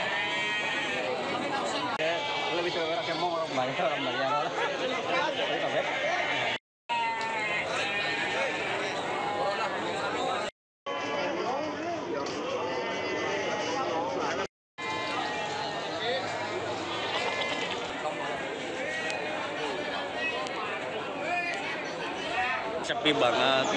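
Goats bleat.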